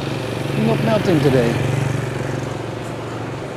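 A motorbike engine idles close by.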